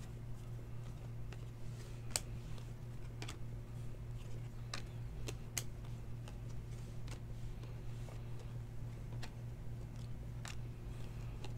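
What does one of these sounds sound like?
Trading cards flick and snap as they are shuffled by hand.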